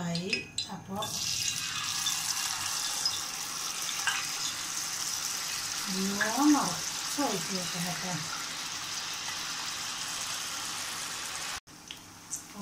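Batter sizzles loudly as it hits hot oil.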